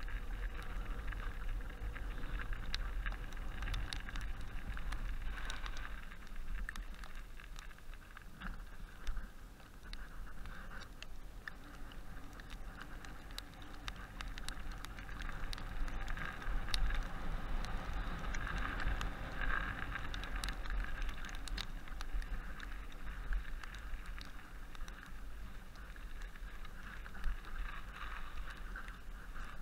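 A bicycle clatters and knocks over bumps.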